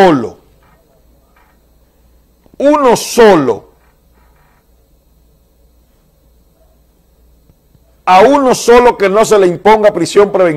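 A man speaks emphatically into a microphone, in short bursts.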